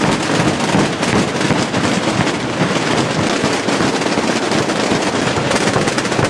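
A large bass drum booms with heavy strokes.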